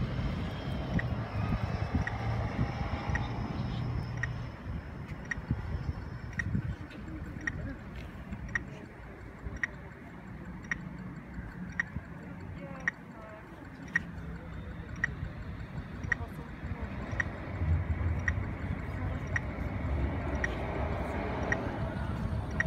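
A pedestrian crossing signal ticks steadily.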